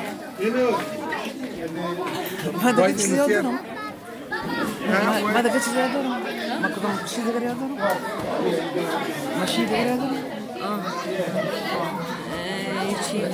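A crowd of men, women and children chatters all around in a large room.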